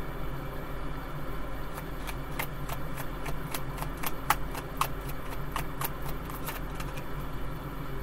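Cards riffle and click as they are shuffled.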